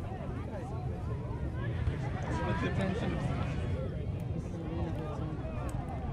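A child kicks a ball on grass.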